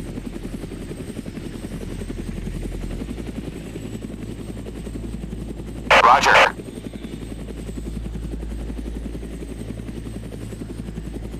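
Helicopter rotor blades thump rapidly and steadily, with a low engine drone.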